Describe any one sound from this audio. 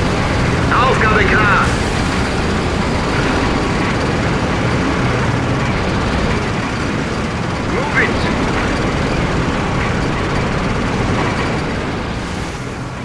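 Tank engines rumble and tracks clatter as armoured vehicles drive along.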